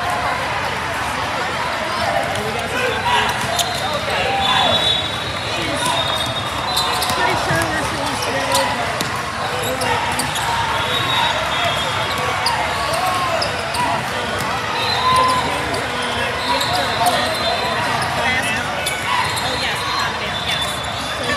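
Young women players call out to each other.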